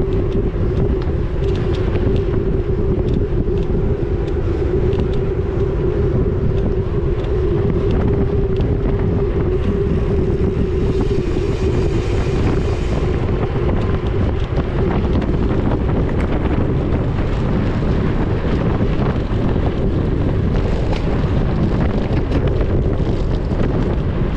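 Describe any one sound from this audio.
Bicycle tyres roll and rattle over a bumpy road.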